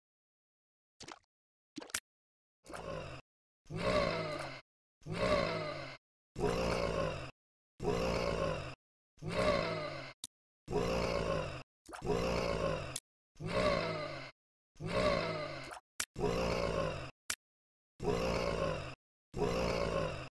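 Wet shots splatter rapidly, over and over.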